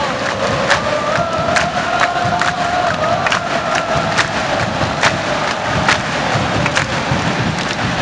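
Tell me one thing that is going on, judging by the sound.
Drums beat in the crowd.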